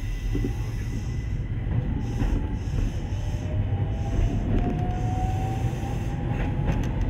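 Train wheels squeal faintly on a curve.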